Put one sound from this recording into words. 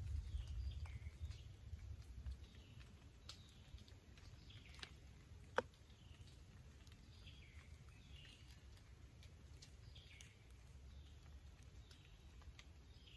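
Wind rumbles softly outdoors.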